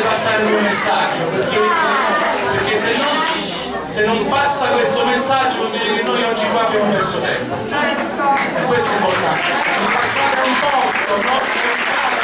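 A woman claps her hands in rhythm.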